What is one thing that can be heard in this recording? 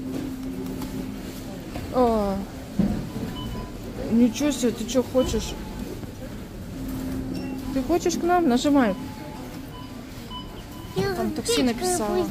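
A child presses a plastic button on a claw machine.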